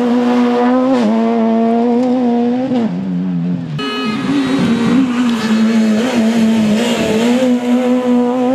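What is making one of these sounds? Gravel sprays and crackles under spinning tyres.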